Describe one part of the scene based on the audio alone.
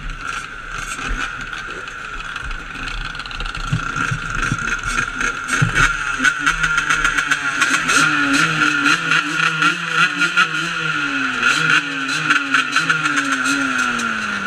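A quad bike engine rumbles steadily nearby.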